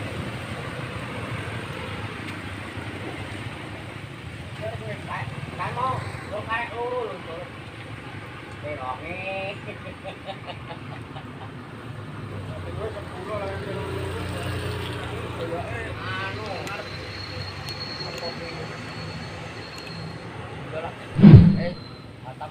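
Cars and a bus rumble by on a wet road.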